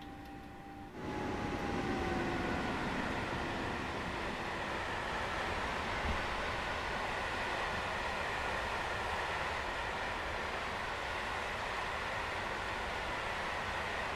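A long freight train rumbles and clatters loudly along the rails.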